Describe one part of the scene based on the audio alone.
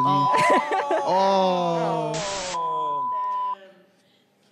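A steady high beep tone sounds.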